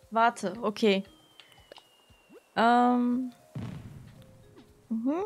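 Soft electronic menu chimes and blips sound as options are picked.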